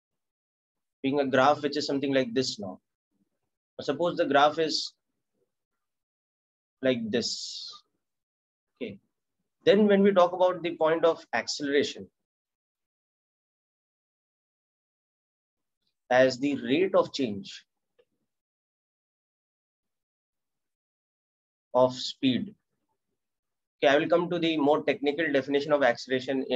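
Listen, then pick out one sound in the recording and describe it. A man speaks calmly into a close microphone, explaining in short bursts with pauses.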